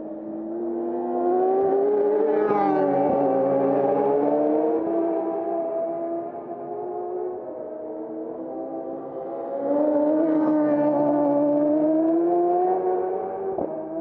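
Racing motorcycle engines roar loudly as they speed past, rising and falling in pitch.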